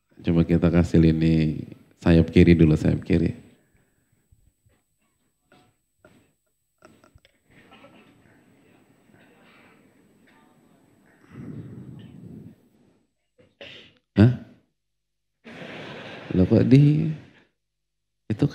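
A man lectures with animation through a microphone in a large echoing hall.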